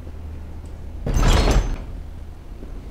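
A heavy metal door is pushed open with a loud scrape.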